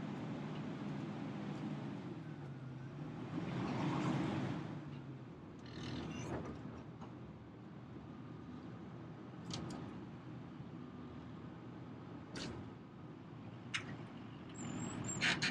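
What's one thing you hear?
Brush and branches scrape and snap against a heavy machine as it moves.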